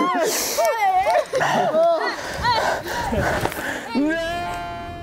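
A group of young people shout and squeal playfully outdoors.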